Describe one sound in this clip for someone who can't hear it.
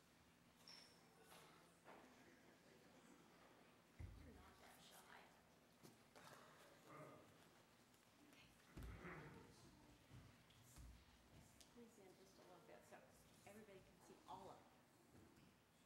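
Children's footsteps patter on a wooden floor.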